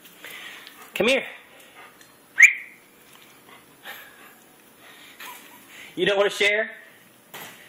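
A small dog yelps and whines close by.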